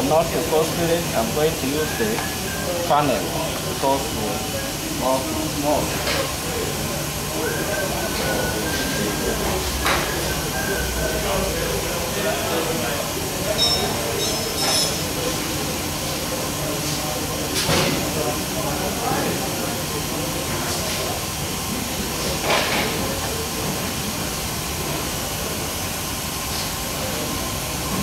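Plastic bottles and a funnel knock and tap against each other.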